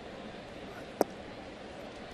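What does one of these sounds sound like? A baseball pops into a catcher's mitt.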